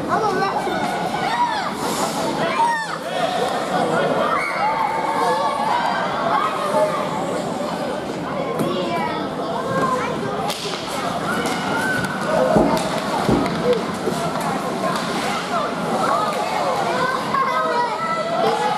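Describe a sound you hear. A crowd of children and adults chatters and calls out in a large echoing rink.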